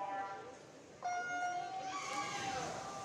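An electronic start signal beeps loudly in a large echoing hall.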